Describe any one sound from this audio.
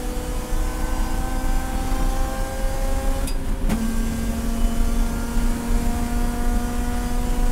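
A racing car engine roars loudly from inside the cabin, dropping in pitch as the driver shifts up a gear.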